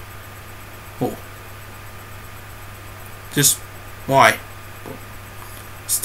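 A young man speaks in short, quiet bursts, close to a webcam microphone.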